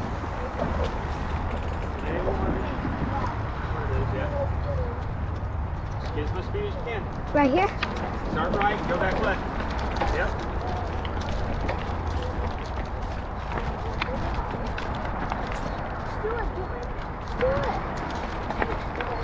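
Bicycle tyres crunch over dry leaves and dirt.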